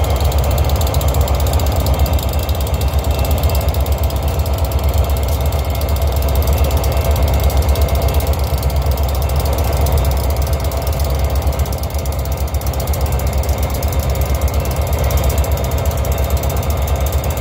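Diesel locomotives rumble loudly close by.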